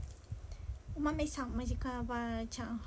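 A young woman speaks close to a microphone in a high, sing-song voice.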